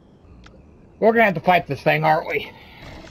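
A large beast grunts and snorts.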